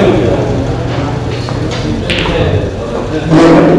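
Pool balls click together and roll across the table.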